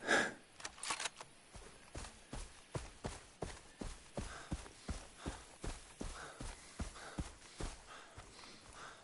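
Footsteps rustle through grass.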